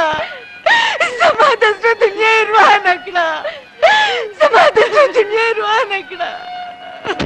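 A woman wails and sobs close by.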